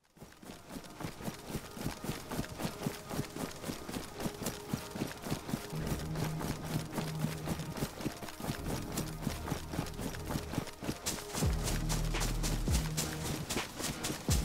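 Footsteps swish steadily through tall grass and undergrowth.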